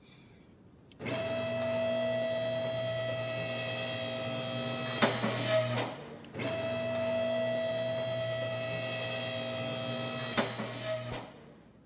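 An electric car lift motor hums steadily, then stops with a clunk.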